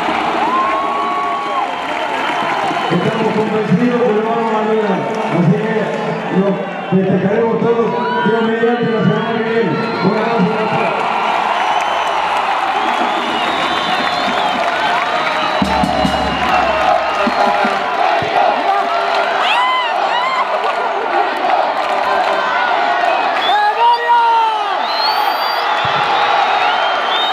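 A large crowd cheers and chants loudly in a big open stadium.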